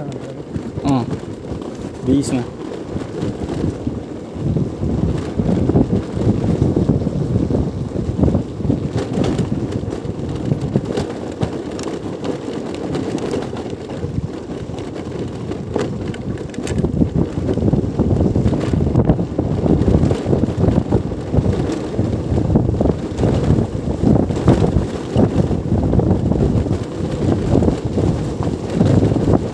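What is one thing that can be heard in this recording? Wind buffets and rumbles loudly.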